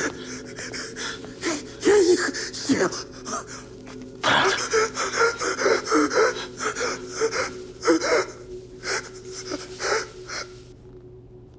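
A man speaks weakly in broken gasps, close by.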